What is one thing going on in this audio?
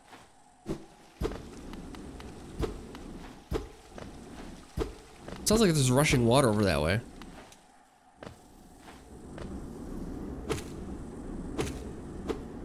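Light footsteps tap and land with soft thuds.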